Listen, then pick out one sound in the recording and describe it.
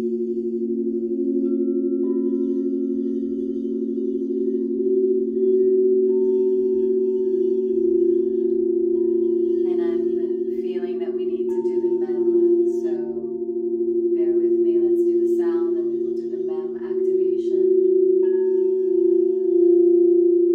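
Crystal singing bowls ring with a steady, layered hum.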